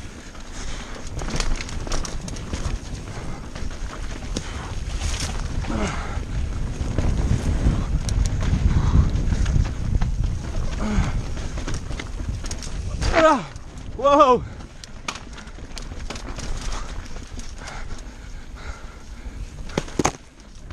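Bicycle tyres rumble and crunch over rock and dirt.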